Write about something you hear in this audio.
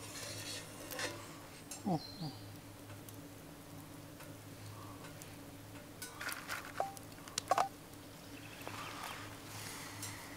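A knife scrapes and taps against wood.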